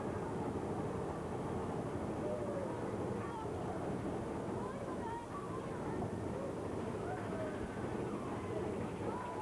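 A ride car rumbles and clatters steadily along its track.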